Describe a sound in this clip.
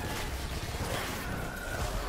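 Guns fire in quick bursts.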